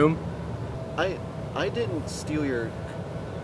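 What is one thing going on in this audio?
A second young man talks calmly close by.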